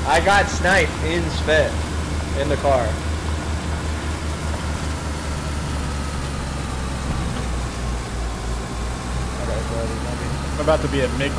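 A car engine hums at a low, steady pitch.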